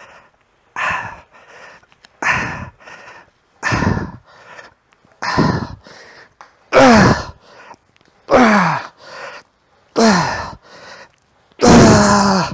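A man exhales forcefully and rhythmically, close by.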